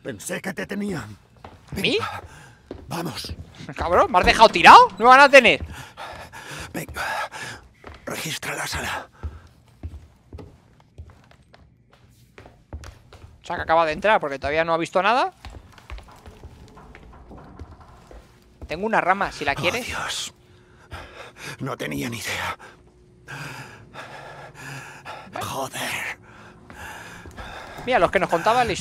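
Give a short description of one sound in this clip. A man speaks urgently and tensely, close by.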